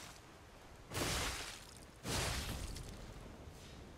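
A heavy blade swings through the air with a whoosh.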